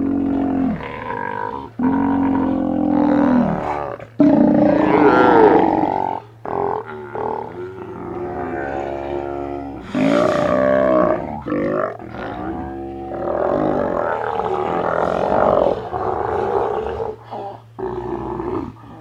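Sea lions roar and bellow loudly close by.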